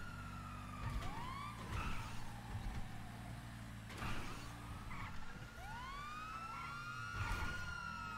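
Tyres squeal as a car turns sharply.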